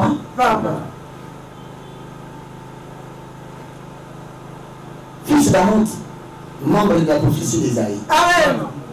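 A man speaks with animation into a headset microphone, pausing between phrases.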